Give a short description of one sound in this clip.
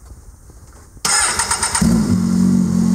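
An engine starter cranks briefly.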